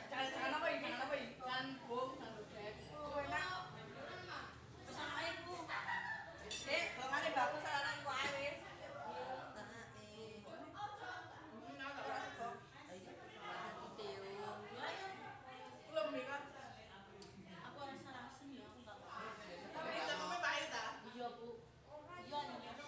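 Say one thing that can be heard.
Several women talk casually nearby, close at hand.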